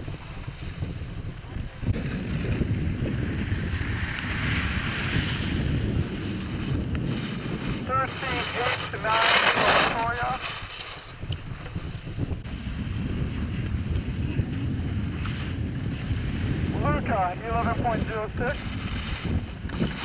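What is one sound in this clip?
Skis scrape and hiss across hard snow, outdoors in wind.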